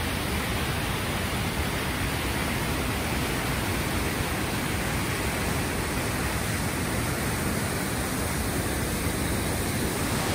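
A mountain stream rushes loudly over rocks.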